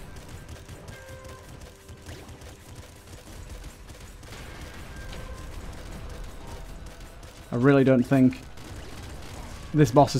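Rapid video game gunfire crackles and pops.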